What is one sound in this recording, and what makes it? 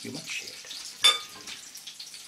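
A metal knife clinks against a ceramic bowl.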